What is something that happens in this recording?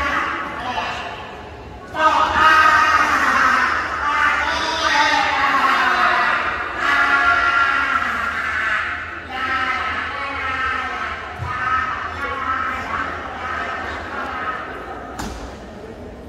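A man performs loudly with animation through loudspeakers in a large echoing hall.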